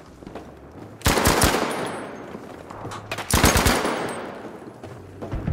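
Heavy explosions boom close by, followed by a long rumbling roar.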